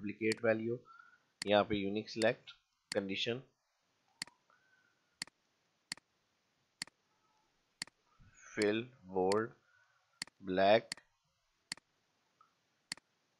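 A computer mouse clicks sharply now and then.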